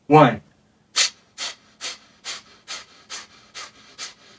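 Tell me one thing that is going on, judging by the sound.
A man breathes out in steady, rhythmic breaths.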